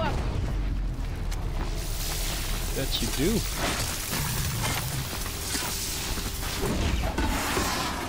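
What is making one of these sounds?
Electric sparks crackle and zap around a machine creature.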